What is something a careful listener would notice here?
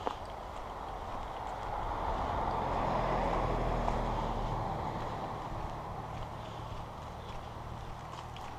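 Wind rushes past, rising and then easing off.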